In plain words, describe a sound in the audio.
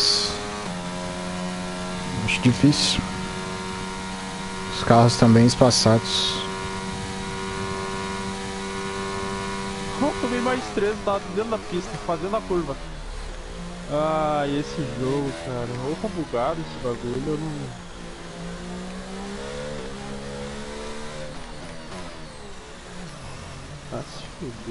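A racing car engine whines steadily at high speed, shifting gears.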